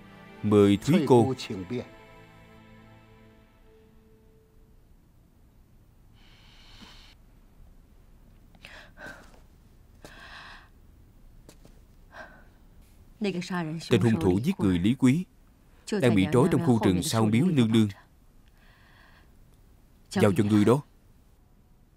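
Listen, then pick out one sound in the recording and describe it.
A woman speaks in a troubled, earnest voice close by.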